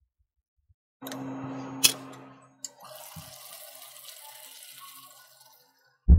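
Food simmers and bubbles in a pan.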